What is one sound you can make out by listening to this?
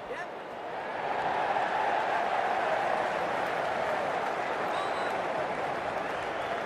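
A large crowd cheers louder.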